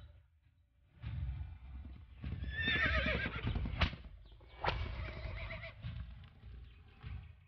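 Hooves pound the ground as a horse gallops.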